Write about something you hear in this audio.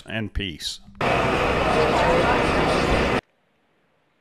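A jet fighter roars as it lands on a runway.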